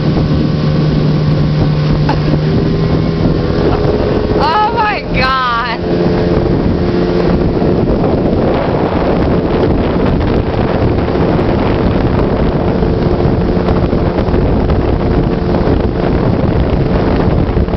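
A boat's outboard motor drones steadily.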